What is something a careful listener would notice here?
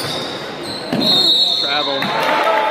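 A referee blows a sharp whistle.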